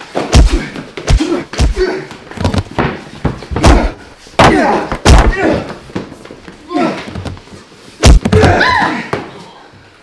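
Bodies thud and scuffle in a struggle.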